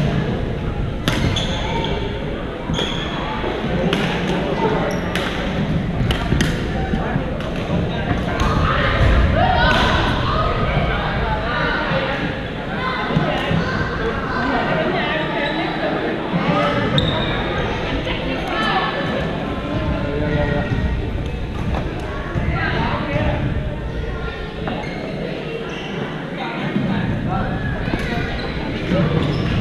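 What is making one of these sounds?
Men and women talk and call out at a distance across the hall.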